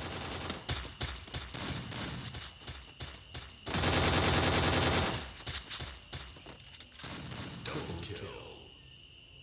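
Gunshots fire.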